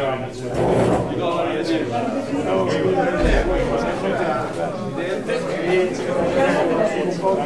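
Men and women talk over one another nearby, a steady babble of voices in a room.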